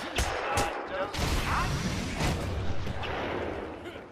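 Heavy punches land with thuds.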